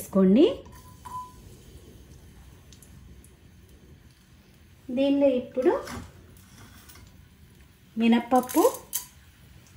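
Garlic pieces drop into hot oil and sizzle softly.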